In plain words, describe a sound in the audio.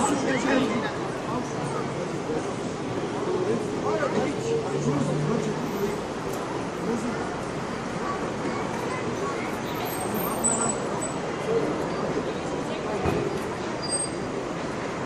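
Several men and women talk outdoors, somewhat far off.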